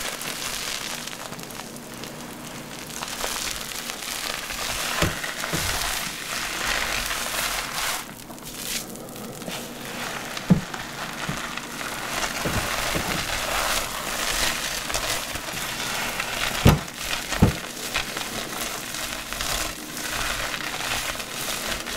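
Hands squish and rub lathered wet hair.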